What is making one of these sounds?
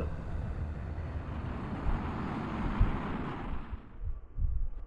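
Jet engines roar with a rushing hiss.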